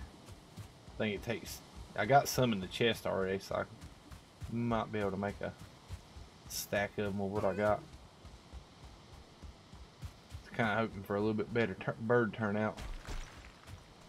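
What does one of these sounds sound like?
A middle-aged man talks calmly and close into a microphone, in short bursts.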